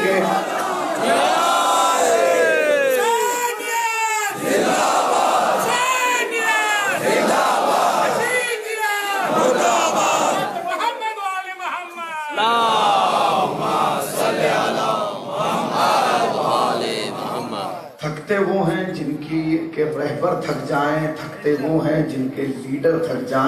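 A crowd of men chants along in unison.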